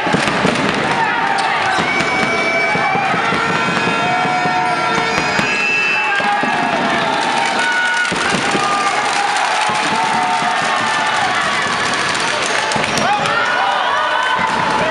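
A crowd cheers and chants loudly in a large echoing hall.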